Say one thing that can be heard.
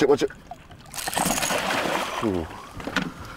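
A fish splashes and thrashes in the water.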